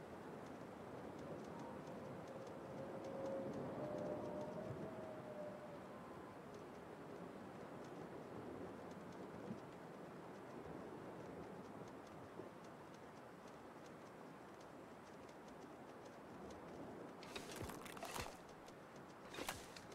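Wind blows steadily outdoors across open snow.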